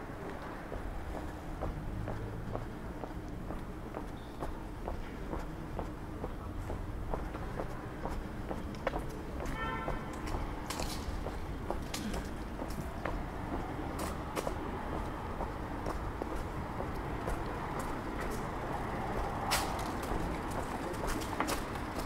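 Footsteps tap steadily on a pavement outdoors.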